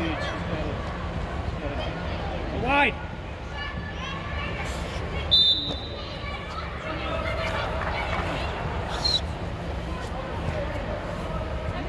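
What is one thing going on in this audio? Children shout to one another across a large echoing hall.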